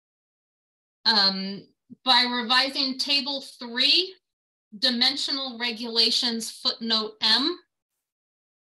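A woman speaks calmly over an online call, with short pauses.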